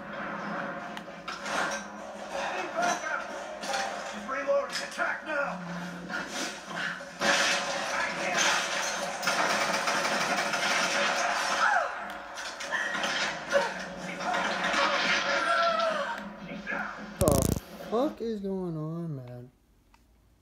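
Loud action game sounds of fighting and clashing play from a television.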